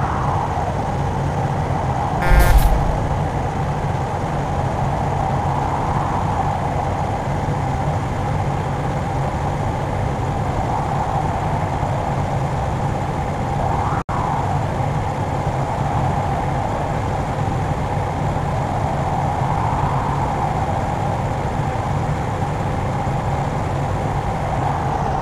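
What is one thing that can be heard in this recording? A bus engine drones steadily.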